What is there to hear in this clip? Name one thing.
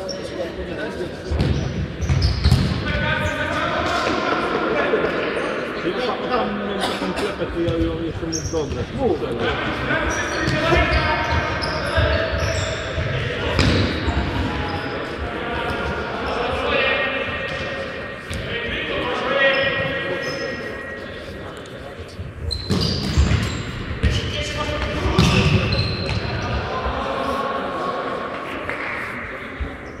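Young men shout to each other during play in an echoing sports hall.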